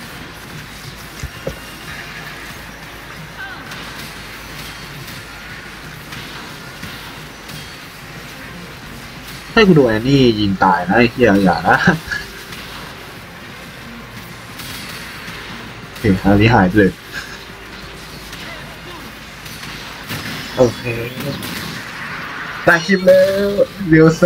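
Magical blasts and whooshes crackle in a busy fantasy battle.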